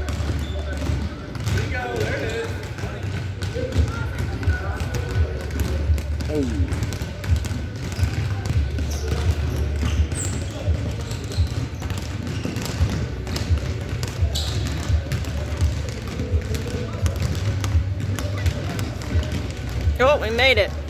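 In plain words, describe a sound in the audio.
Basketballs bounce on a hard floor in a large echoing hall.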